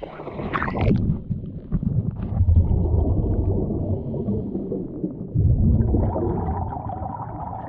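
Air bubbles gurgle and rumble from a diver's breathing underwater.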